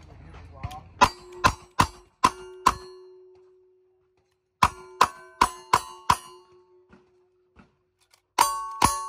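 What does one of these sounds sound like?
Bullets ring against steel targets.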